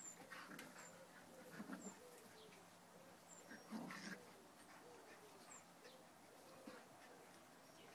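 Dogs growl and snarl playfully as they wrestle.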